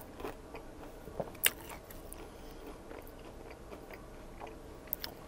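A man chews crunchy food close to a microphone, with soft crackles and mouth sounds.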